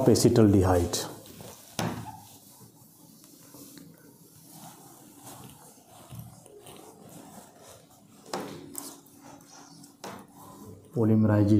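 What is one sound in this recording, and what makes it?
A cloth rubs and wipes across a board.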